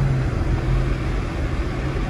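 A windshield wiper sweeps across the glass.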